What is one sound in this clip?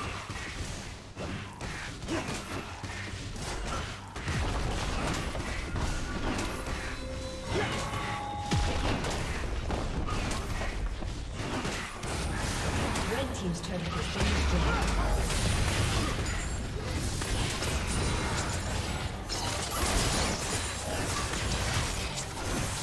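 Magic spells whoosh, crackle and burst in a fantasy battle.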